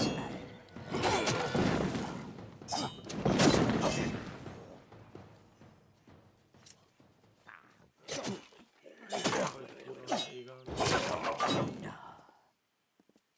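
Magic blasts burst with a crackling roar.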